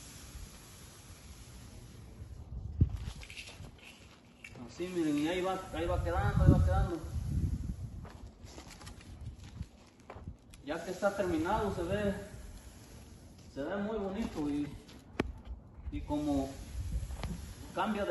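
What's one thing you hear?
A broom brushes softly across wet concrete.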